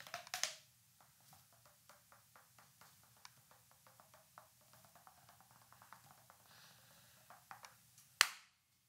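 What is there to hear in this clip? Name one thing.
A man pats his head with soft, quick taps.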